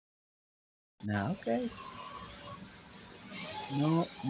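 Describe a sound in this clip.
A man speaks through an online call.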